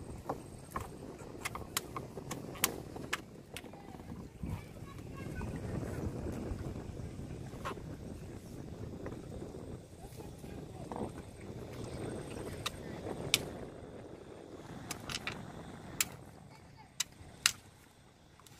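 Fish flap and slap against a wooden boat.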